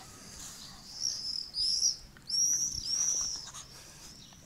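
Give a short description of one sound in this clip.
A small dog whines and yelps excitedly.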